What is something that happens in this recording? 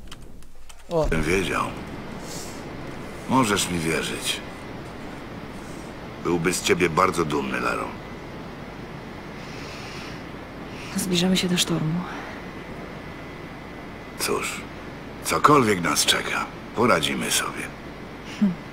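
An older man speaks calmly and in a low voice, close by.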